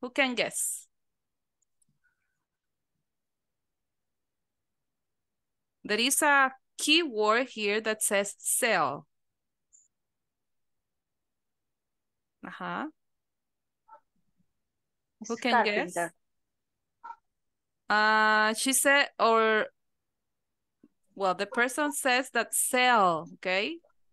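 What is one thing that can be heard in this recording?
A woman speaks over an online call, reading out slowly with pauses.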